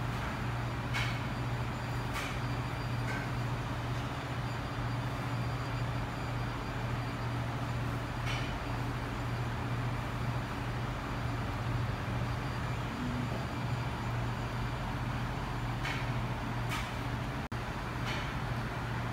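Chopsticks click lightly against a plate.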